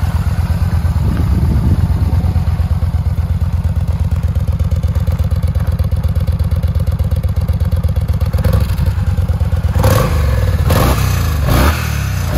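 A motorcycle engine revs up briefly a few times.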